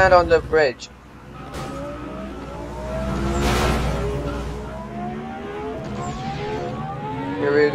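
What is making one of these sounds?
A car engine revs and roars as it speeds up through the gears.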